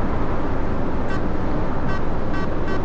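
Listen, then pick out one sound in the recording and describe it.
A dashboard indicator ticks rapidly.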